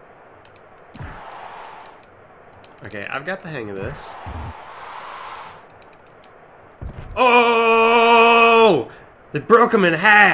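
Video game sound effects play loudly.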